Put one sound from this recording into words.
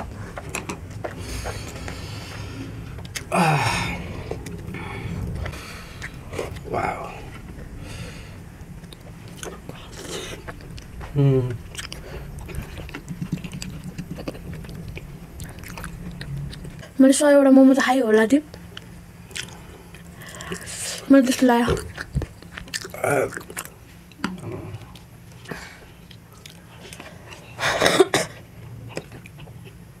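A young man chews and slurps close to a microphone.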